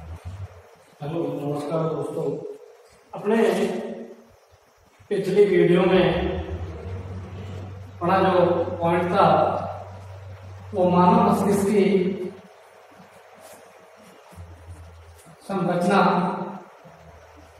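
A young man speaks clearly and steadily, close by.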